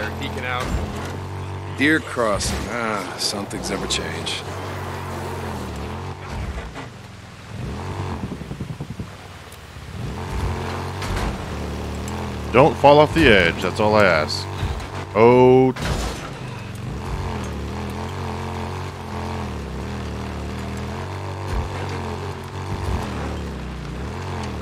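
A motorcycle engine hums steadily as it rides over rough ground.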